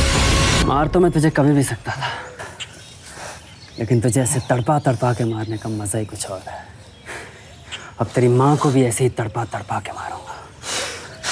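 A man speaks tensely and close by.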